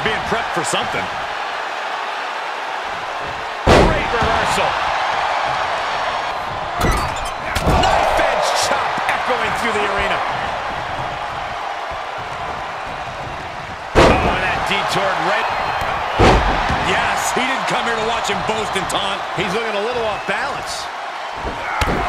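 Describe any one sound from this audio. A large crowd cheers and roars throughout in a big echoing arena.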